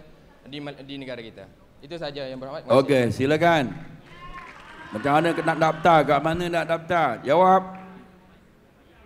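A young man speaks with animation into a microphone over loudspeakers in a large echoing hall.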